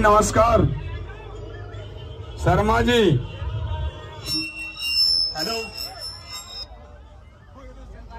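A crowd of young men shouts and cheers loudly outdoors.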